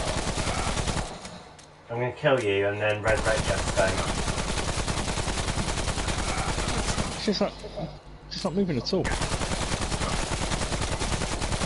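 A rapid-fire gun shoots in fast bursts.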